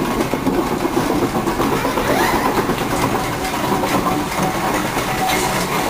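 A steam roller clanks and rumbles as it approaches.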